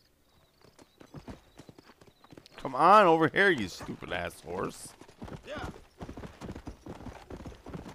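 A horse gallops on a dirt trail.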